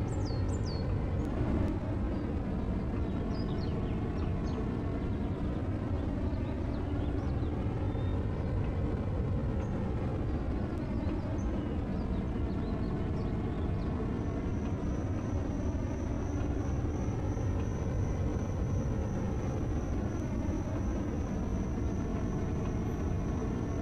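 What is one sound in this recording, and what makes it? A mining laser hums steadily as it fires.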